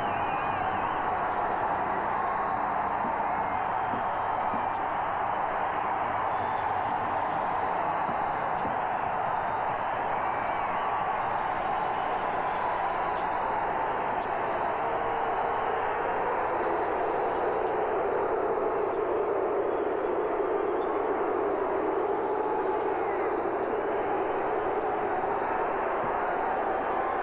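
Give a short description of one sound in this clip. A large arena crowd roars and cheers loudly throughout.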